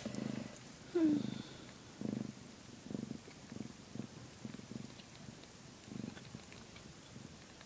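A cat purrs loudly and close by, in slow rhythmic pulses.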